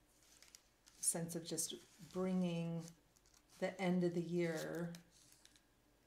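A woman speaks calmly close to a microphone.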